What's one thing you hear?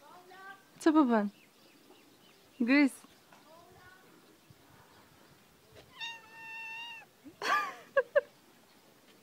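A cat meows repeatedly, close by.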